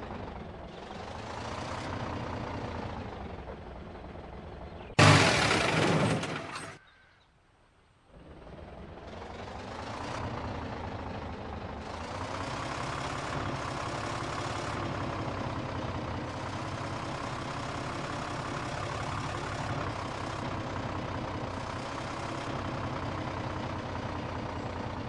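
A truck engine idles and rumbles, then revs as the truck drives off.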